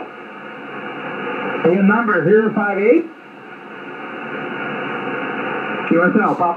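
Static hisses steadily from a radio receiver.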